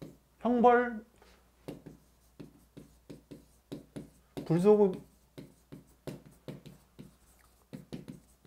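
A pen taps and scratches lightly on a board.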